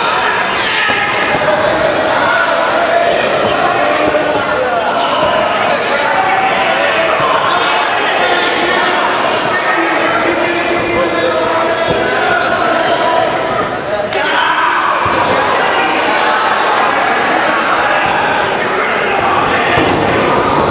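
A crowd cheers and chants loudly in an echoing hall.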